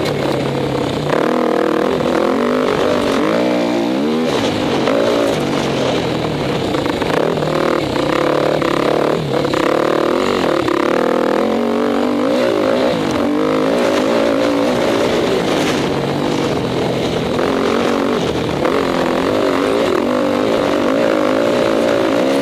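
A dirt bike engine roars close by, revving up and down as it shifts gears.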